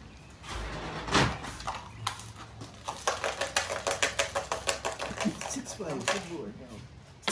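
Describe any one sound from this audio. Game pieces click and knock on a wooden board.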